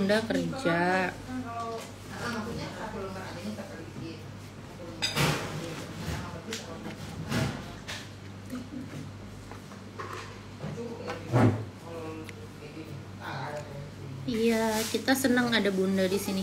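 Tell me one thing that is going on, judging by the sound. Food crunches as a young woman eats.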